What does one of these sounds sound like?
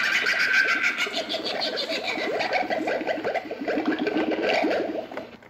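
An animated witch figure speaks in a raspy, cackling old woman's voice through a small loudspeaker.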